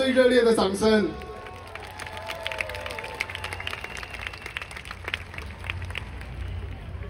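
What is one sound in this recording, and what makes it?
A large crowd claps and cheers in a big hall.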